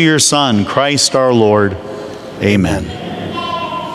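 A man sings a chant through a microphone in an echoing hall.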